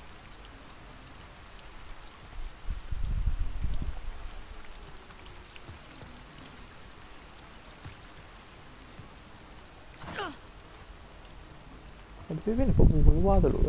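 Rain falls steadily all around.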